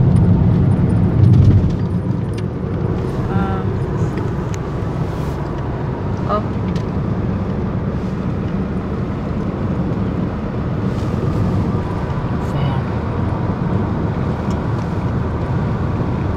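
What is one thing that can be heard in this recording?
A car engine hums and road noise rumbles steadily from inside a moving car.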